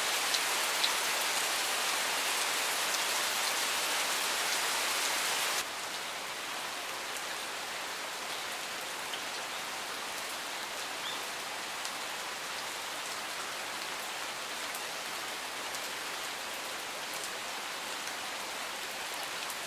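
Steady rain patters down outdoors, easing a little after a few seconds.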